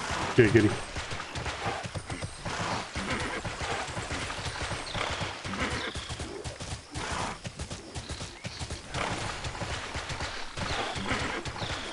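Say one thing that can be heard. Hooves clop as a horse trots along.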